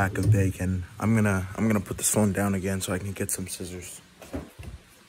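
A boy talks with animation close to a phone's microphone.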